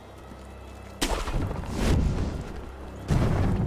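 A grappling rope zips and whooshes through the air.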